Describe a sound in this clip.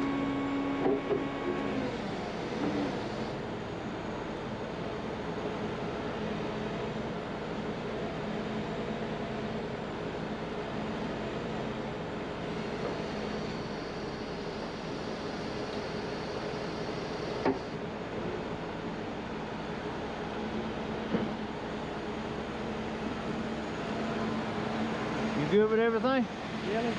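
A heavy truck engine idles steadily nearby.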